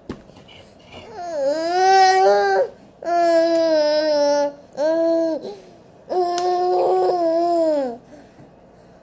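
A baby makes loud, long, drawn-out squealing cries close by.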